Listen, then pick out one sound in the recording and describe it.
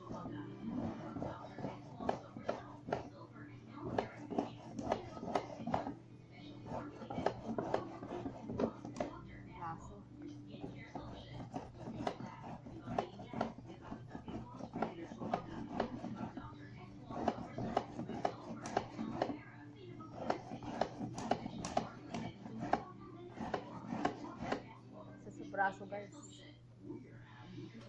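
A stiff strip rustles and scrapes as it is woven by hand.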